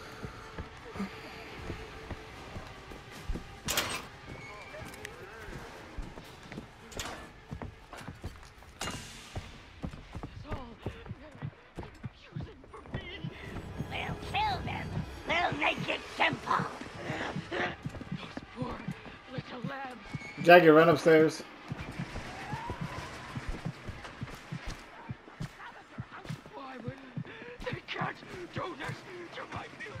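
Footsteps thud steadily on hard floors and stairs.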